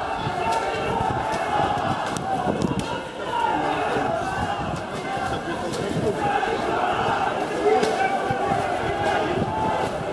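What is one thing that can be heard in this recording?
A large crowd of men shouts and chants loudly outdoors.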